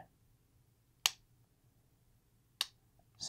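A small plastic device clicks sharply.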